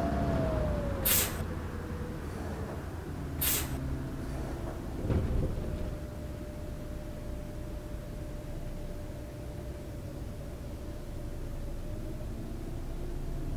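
A bus engine idles steadily.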